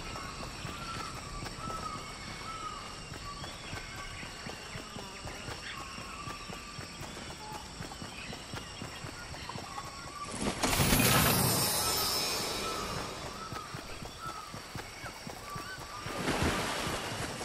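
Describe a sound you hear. Footsteps patter quickly on grass and dirt.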